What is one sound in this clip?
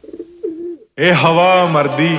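A young man sings close by, with feeling.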